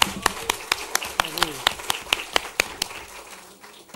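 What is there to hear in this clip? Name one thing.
Two men clap their hands.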